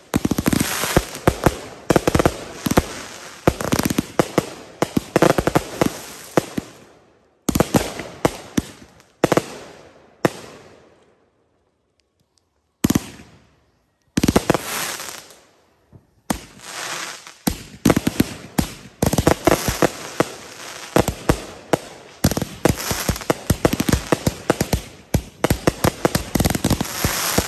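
Fireworks crackle and bang in rapid bursts outdoors.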